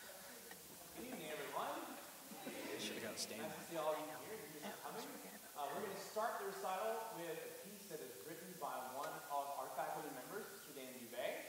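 A man speaks calmly to an audience in a large echoing hall.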